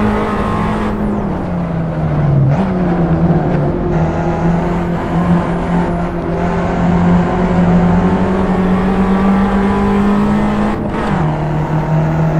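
A small four-cylinder hatchback engine drops in pitch as gears change.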